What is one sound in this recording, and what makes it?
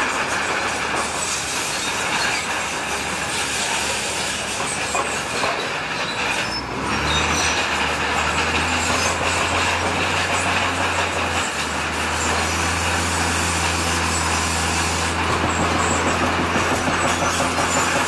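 Rocks scrape and grind under a bulldozer blade.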